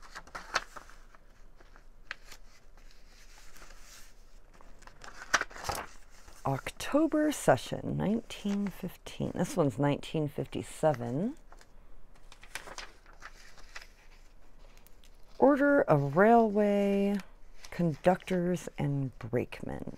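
Paper rustles and crinkles as sheets are handled and smoothed.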